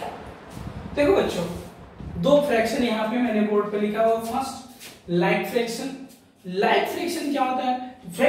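A young man speaks calmly and clearly, like a teacher explaining.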